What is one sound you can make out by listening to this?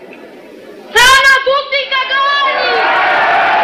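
A man shouts loudly to a crowd.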